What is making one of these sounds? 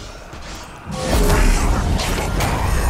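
Magic blasts and impacts burst loudly.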